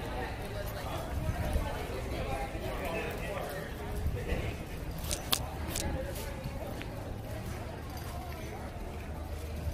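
A crowd chatters in the distance outdoors.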